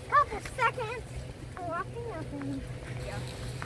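A young girl talks excitedly nearby.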